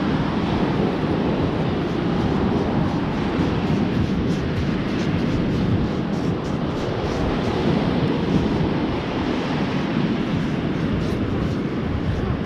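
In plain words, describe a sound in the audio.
Sand rattles and crunches as it is sifted through a metal scoop.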